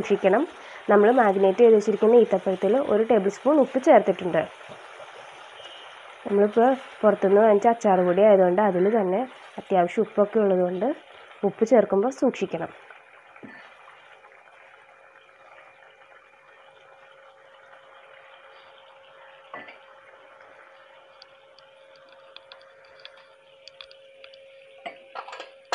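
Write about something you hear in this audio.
Sauce bubbles and simmers softly in a pot.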